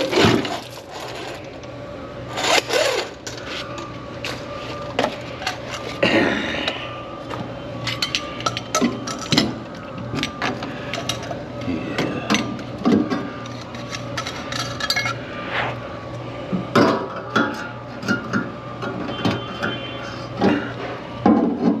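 Metal parts clink and clatter close by.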